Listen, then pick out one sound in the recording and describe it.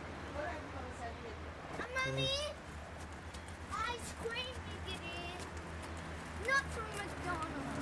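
Children's voices call out nearby.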